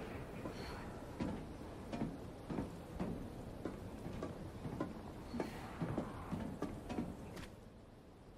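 Footsteps walk over a hard floor.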